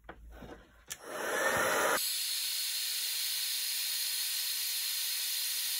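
A heat gun blows with a steady, loud whooshing roar.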